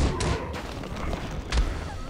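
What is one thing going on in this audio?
Flames burst with a whooshing roar.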